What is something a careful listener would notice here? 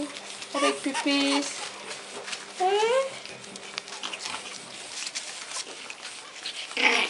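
Small paws patter and scratch on a soft floor.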